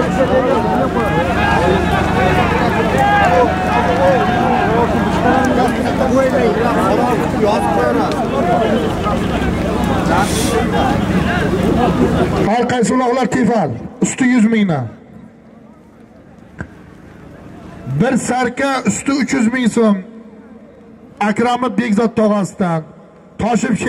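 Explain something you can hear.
A large outdoor crowd of men shouts and chatters loudly.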